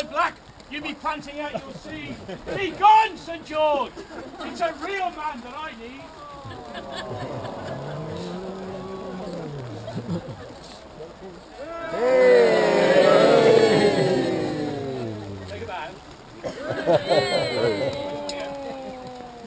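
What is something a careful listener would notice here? Rain patters steadily on umbrellas.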